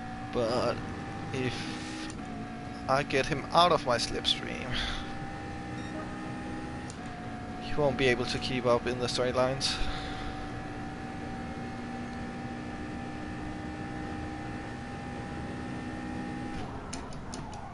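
A racing car engine drones at a steady high pitch.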